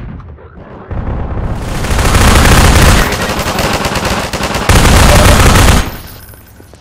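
A rifle fires loud, rapid bursts in an echoing hall.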